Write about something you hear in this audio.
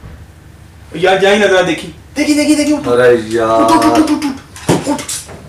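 A young man sings loudly and close by.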